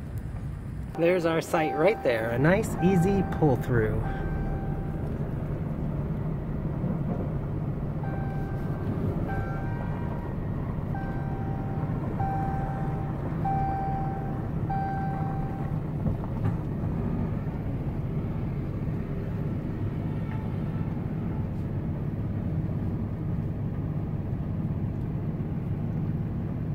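A car engine hums steadily while the car rolls slowly.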